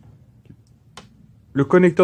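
A metal test probe clicks against a plastic connector.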